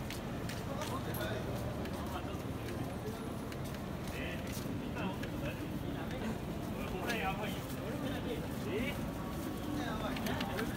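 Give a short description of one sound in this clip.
Men talk quietly nearby.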